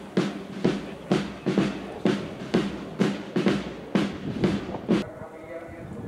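Boots stamp in step as a group of soldiers marches.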